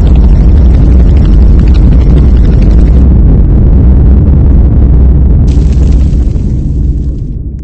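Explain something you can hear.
A huge explosion roars with a deep, steady rumble that fades toward the end.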